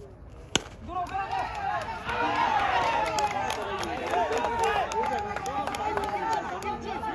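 Several young men cheer loudly together.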